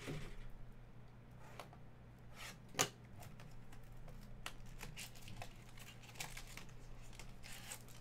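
Plastic wrapping crinkles and rustles as hands tear open a card pack.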